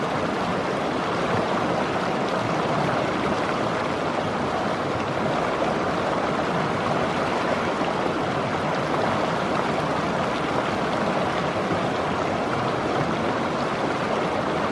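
A shallow creek rushes and splashes steadily over rocks close by.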